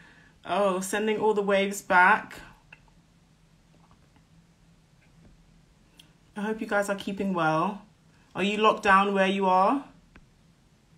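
A woman speaks calmly and close up, in short bursts with pauses.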